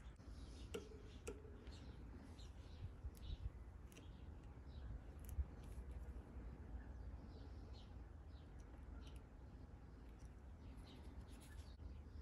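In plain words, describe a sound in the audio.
A wire cable scrapes and ticks as fingers handle it close by.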